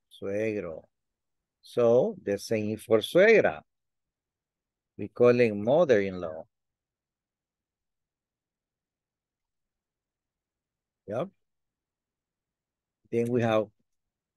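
A man speaks calmly over an online call, in short phrases with pauses.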